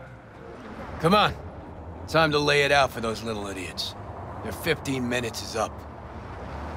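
A man speaks calmly in a deep voice, close by.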